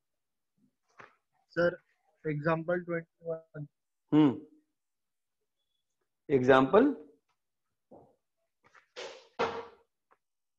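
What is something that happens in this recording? A young man speaks calmly close by, in short phrases with pauses.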